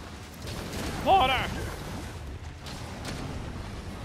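Explosions boom loudly in a video game.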